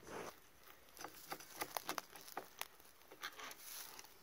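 A knife taps sharply on a cutting board.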